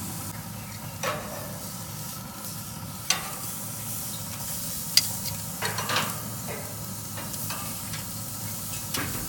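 Metal tongs clack against a grill grate.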